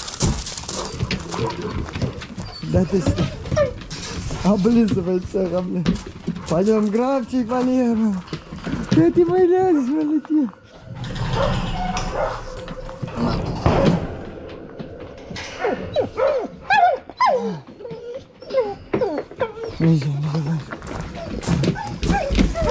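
Dogs whine and yelp excitedly close by.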